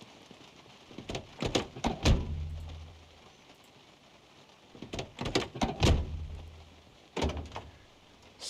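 A car door opens and slams shut.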